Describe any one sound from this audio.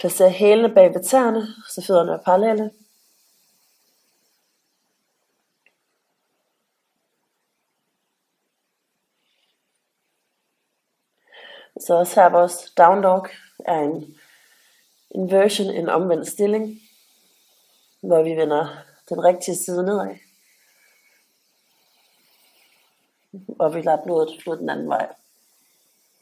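A woman speaks calmly and clearly into a close microphone, pausing between phrases.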